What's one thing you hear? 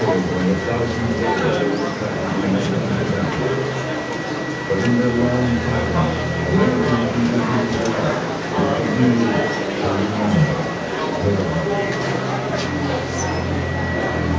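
A crowd of people murmurs and chatters nearby in an echoing hall.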